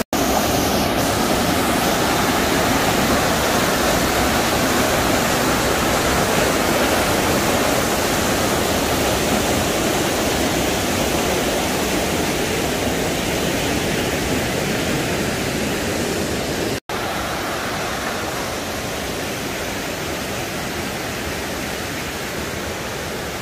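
Water rushes loudly over rocks in a fast stream.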